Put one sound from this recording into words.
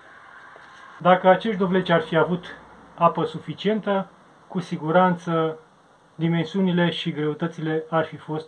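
A middle-aged man talks calmly, close to the microphone.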